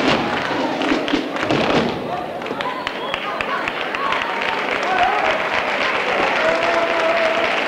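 Feet stamp and shuffle on a wooden stage floor.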